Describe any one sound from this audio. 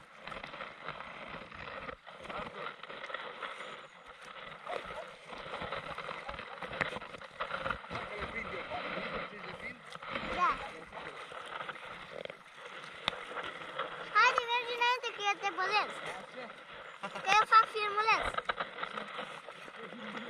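Water laps and splashes steadily against a boat's hull.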